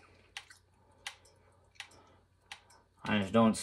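Short menu clicks tick at a steady pace.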